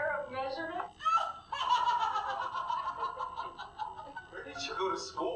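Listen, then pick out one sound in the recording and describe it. A woman laughs loudly and at length nearby.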